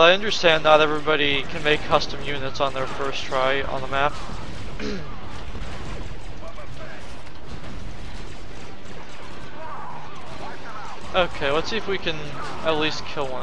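Blaster shots fire rapidly.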